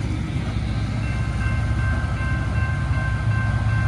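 A railway crossing bell rings repeatedly.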